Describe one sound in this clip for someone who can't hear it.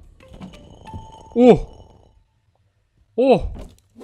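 A wooden bookshelf creaks as it swings open.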